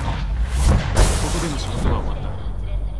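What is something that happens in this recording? A heavy metal hatch hisses and clanks open.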